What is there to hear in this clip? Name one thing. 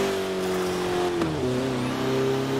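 A car engine drops in pitch briefly as the gear changes.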